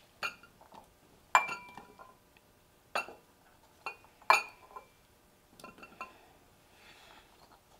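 Chopped vegetables drop into a ceramic bowl with soft knocks.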